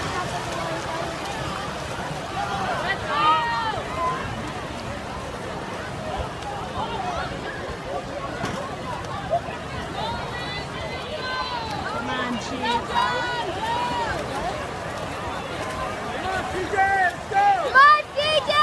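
Swimmers splash through the water.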